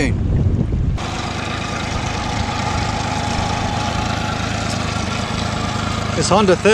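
An outboard motor idles with a steady hum.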